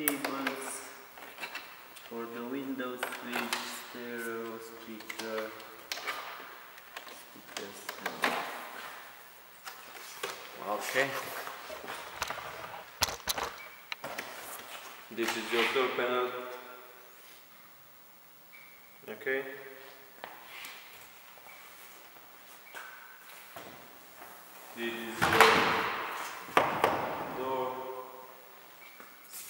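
A man talks calmly and explains, close by.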